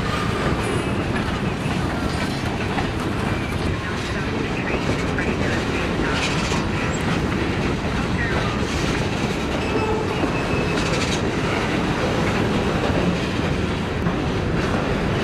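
Train wheels squeal faintly on the rails.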